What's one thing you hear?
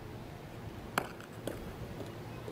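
Boots stamp sharply on hard ground.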